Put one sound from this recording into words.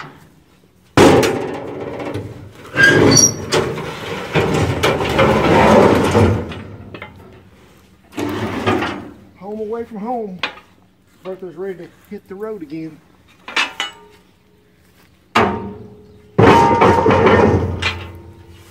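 A heavy metal box scrapes and clanks as it is shoved onto a trailer.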